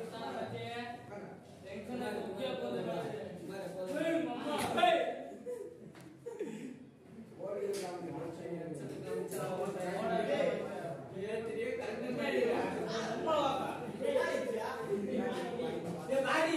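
A man answers from a little further off in an echoing room.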